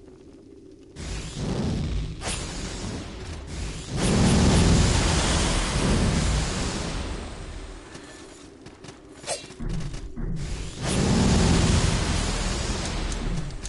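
Heavy sword blows strike and thud in a fight.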